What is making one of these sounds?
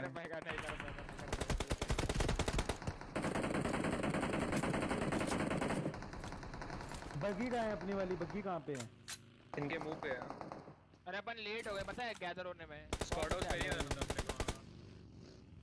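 Gunfire bursts rapidly in quick rattling volleys.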